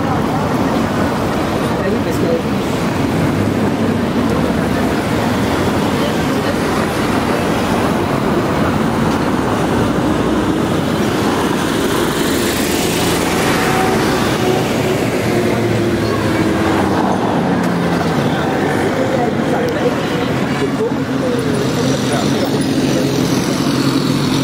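Cars drive past on a cobbled street.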